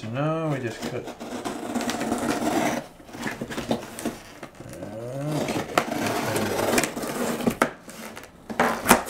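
A knife slices through packing tape on a cardboard box.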